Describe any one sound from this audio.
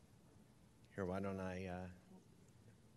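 A man speaks briefly over a microphone.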